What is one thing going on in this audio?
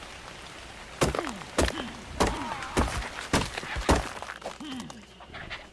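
A pickaxe strikes rock.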